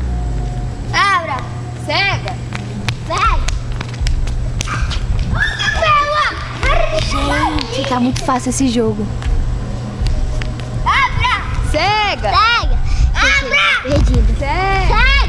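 Children shriek and shout while playing.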